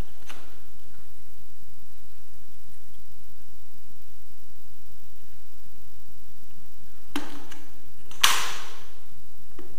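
A metal ruler clicks against wood.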